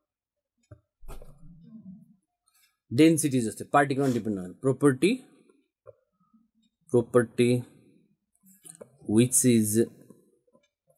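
A man speaks calmly into a close microphone, explaining in short bursts with pauses.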